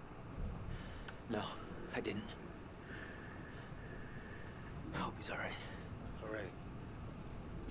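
A young man talks quietly.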